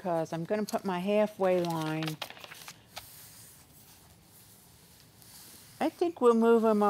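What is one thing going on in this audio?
A middle-aged woman talks calmly and clearly into a nearby microphone.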